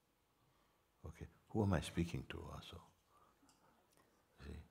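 An older man speaks calmly and slowly into a close microphone.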